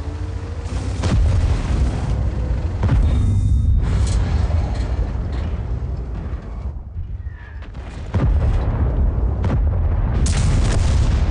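A tank cannon fires with loud, sharp booms.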